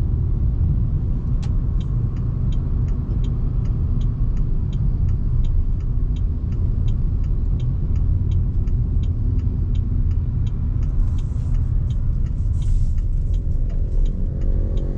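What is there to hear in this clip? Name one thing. A car engine hums steadily with a low road rumble.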